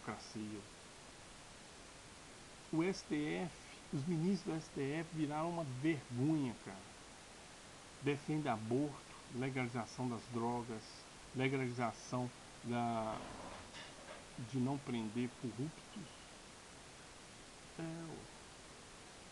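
A man speaks calmly and close by, with pauses.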